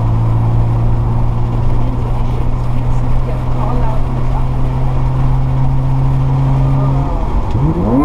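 A car engine hums steadily while cruising.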